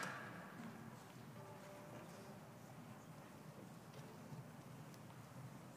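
An audience murmurs softly in a large echoing hall.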